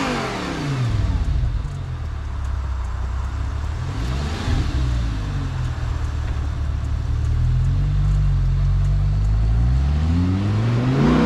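A sports car engine idles close by with a deep burble.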